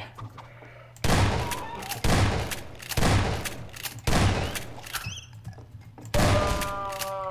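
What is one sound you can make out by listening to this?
A shotgun fires loud blasts, one after another.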